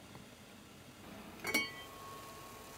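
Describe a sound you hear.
A ceramic lid clinks onto a pot.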